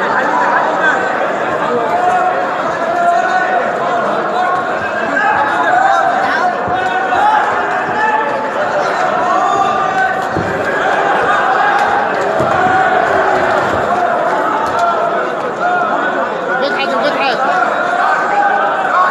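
A crowd shouts and cheers loudly in a large echoing hall.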